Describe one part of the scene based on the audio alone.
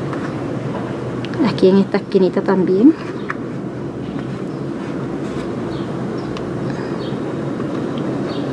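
Paper rustles close by as hands handle it.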